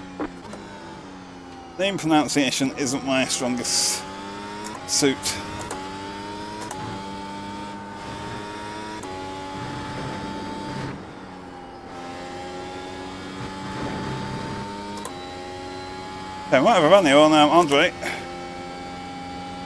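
A racing car engine whines at high revs and shifts gears.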